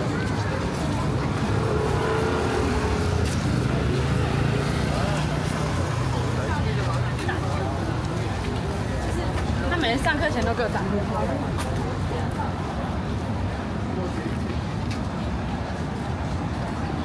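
A steady city hum fills the outdoors.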